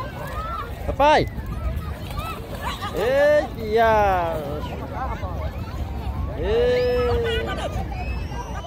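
Children shout and squeal playfully nearby.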